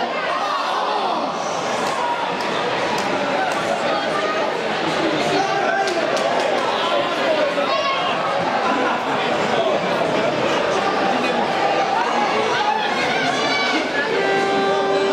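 A crowd of spectators shouts and cheers in an echoing rink.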